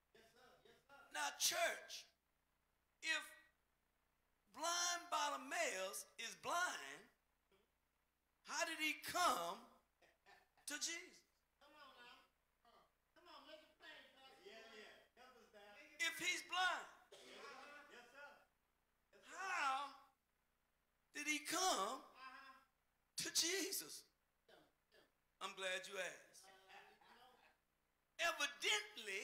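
An older man preaches with animation into a microphone, in bursts with pauses.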